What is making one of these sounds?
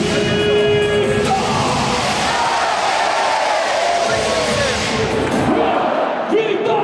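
A young man talks close by, over the crowd.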